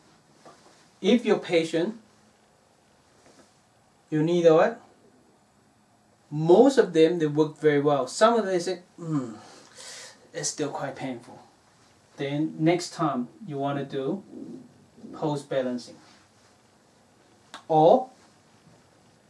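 A man speaks calmly and clearly up close.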